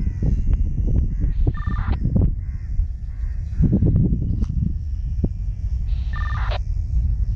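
A small plane's engine drones overhead in the distance.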